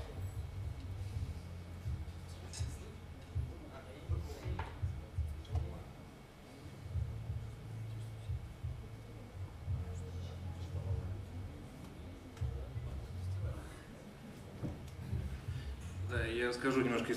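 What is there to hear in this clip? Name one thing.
An electric bass plays a low, pulsing line.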